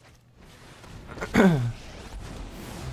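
A magical sound effect bursts out.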